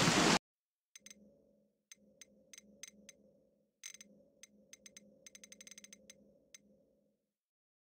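Menu clicks tick softly in quick bursts.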